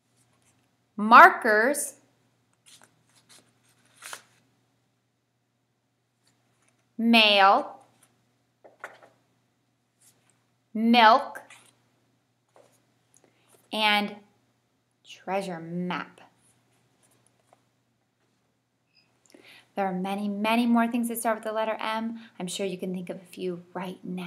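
A young woman speaks clearly and slowly close by, pausing between words.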